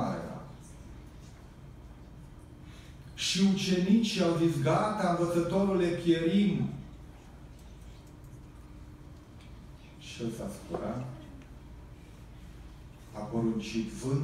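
A middle-aged man speaks calmly through a microphone and loudspeakers in an echoing hall, pausing between phrases.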